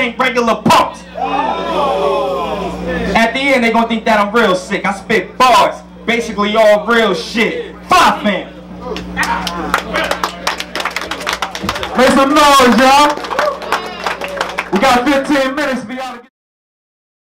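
A young man raps loudly and forcefully into a microphone, heard through loudspeakers.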